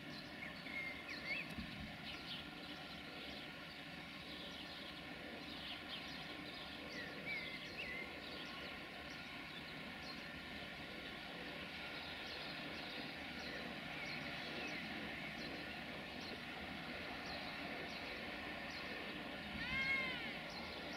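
An electric locomotive hums steadily as it rolls slowly closer.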